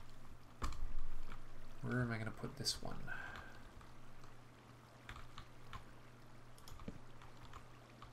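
Water trickles and splashes steadily.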